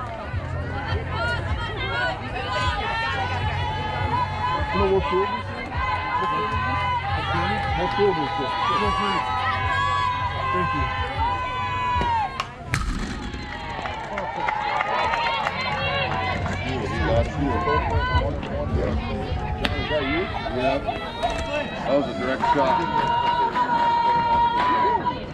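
Young girls shout and cheer with animation outdoors.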